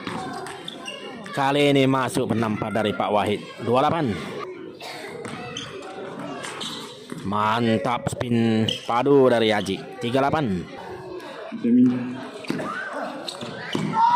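A table tennis ball clicks off paddles and the table in a rally.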